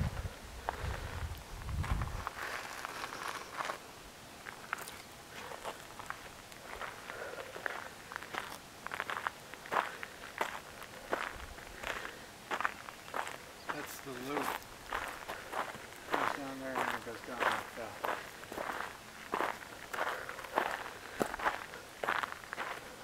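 Footsteps crunch on gravel and dirt at a steady walking pace.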